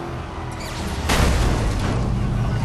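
A loud burst goes off nearby.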